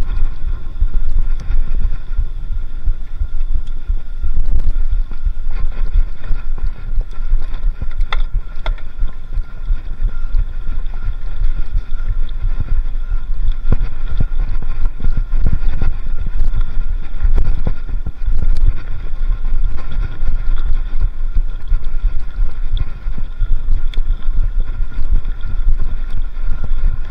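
Bicycle tyres rattle and crunch over a bumpy dirt trail.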